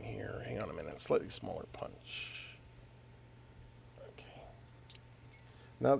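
Small metal parts click and scrape together in someone's hands.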